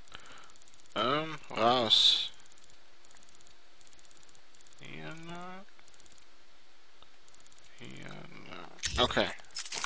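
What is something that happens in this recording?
Interface tones chime as a map menu scrolls.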